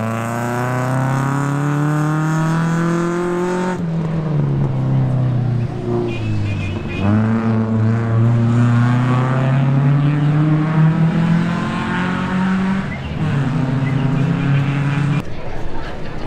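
A car engine revs hard, rising in pitch and dropping sharply with each gear change.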